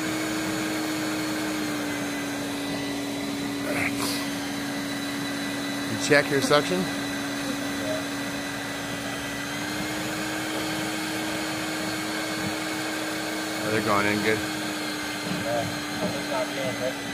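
A vacuum motor hums steadily through a hose.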